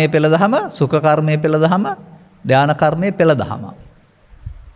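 An elderly man speaks calmly and expressively into a microphone, in a sing-song voice.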